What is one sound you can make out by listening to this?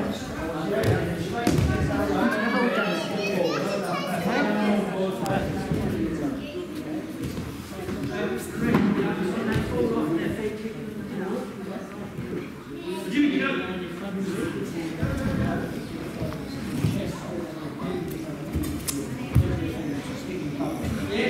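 Many people talk and call out at once in a large echoing hall.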